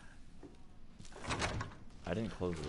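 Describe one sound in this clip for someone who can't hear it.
A door handle rattles.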